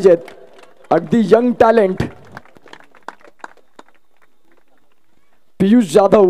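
A man announces loudly over a loudspeaker, with pauses between phrases.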